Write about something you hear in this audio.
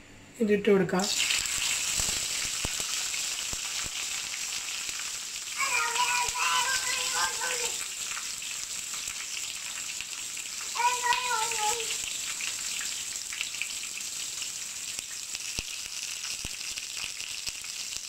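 Oil sizzles and crackles loudly in a hot pan.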